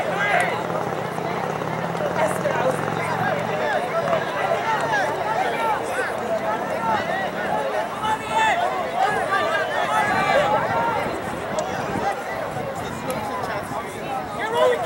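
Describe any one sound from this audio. Young men call to each other across an open playing field.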